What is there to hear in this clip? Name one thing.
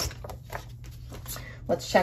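A page of paper rustles as it is lifted and turned.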